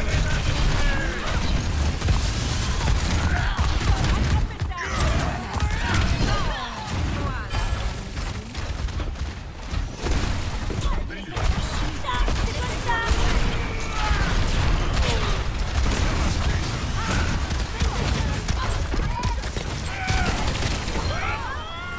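Guns fire in rapid bursts with loud electronic blasts.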